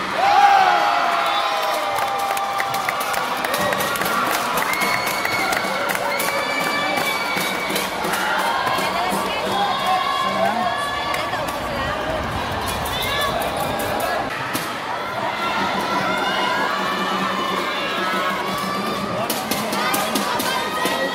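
A crowd of young spectators cheers and shouts throughout, in a large echoing hall.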